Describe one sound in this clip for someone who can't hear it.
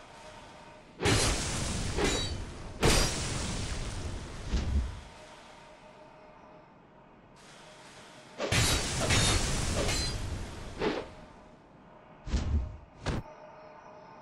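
Weapons clash and strike in loud, crackling bursts.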